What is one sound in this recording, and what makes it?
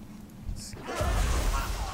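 A spell strikes with a loud burst of magic.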